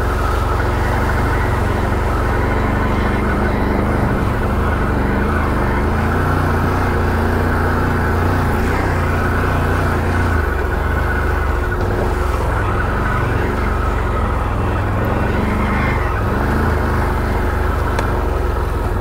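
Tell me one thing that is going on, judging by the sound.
A quad bike engine rumbles steadily up close, rising and falling as it drives along a dirt trail.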